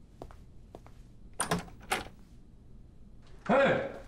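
A door handle clicks.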